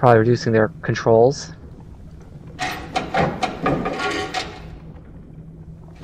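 A metal lever creaks as it is pulled down and pushed back up.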